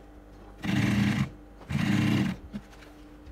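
A sewing machine runs in short, fast bursts.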